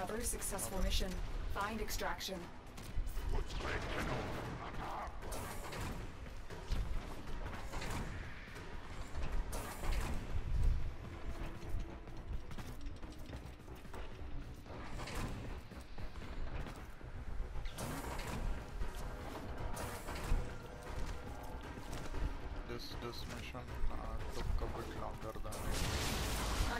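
Quick footsteps thud and clatter on a metal floor.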